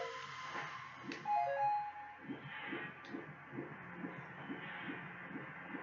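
Video game music plays with a steady, pulsing beat.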